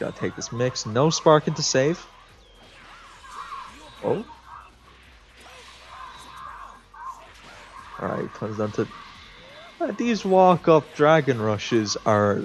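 Punches and kicks land with heavy thuds.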